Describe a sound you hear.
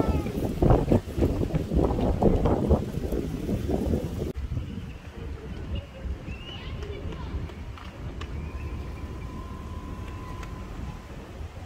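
Water laps gently against a quay.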